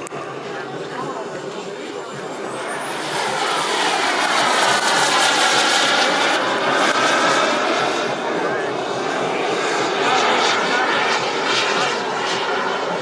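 A jet engine roars loudly overhead, rising as the jet passes close and then rumbling on.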